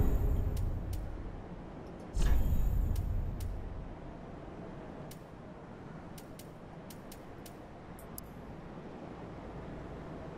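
Menu clicks tick softly and quickly.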